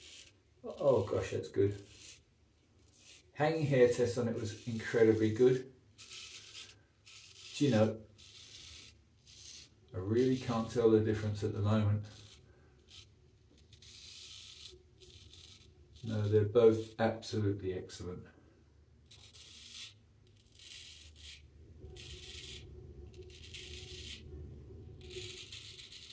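A razor scrapes through stubble in short strokes.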